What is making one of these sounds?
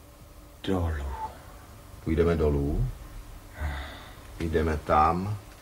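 A man speaks calmly and slowly nearby.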